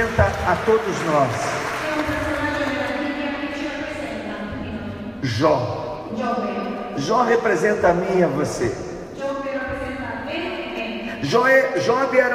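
A young man sings through a microphone in a large echoing hall.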